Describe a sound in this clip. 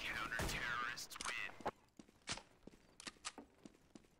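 Metal parts of a rifle click and clack during a reload.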